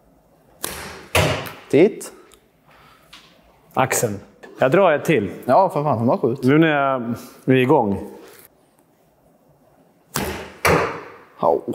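A bowstring snaps as an arrow is released.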